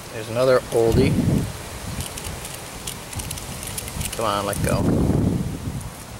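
Plastic fishing lures click and rattle as a hand picks through a tackle box.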